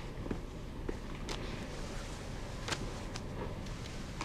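An envelope is set down on a desk with a soft tap.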